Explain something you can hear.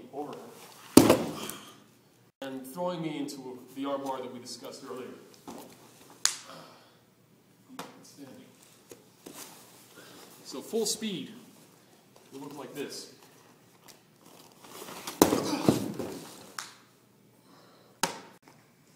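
Bodies thud onto a padded mat.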